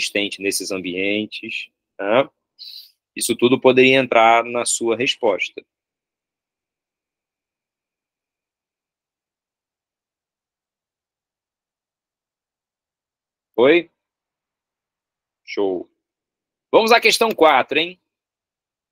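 A man speaks calmly through an online call microphone, pausing between phrases.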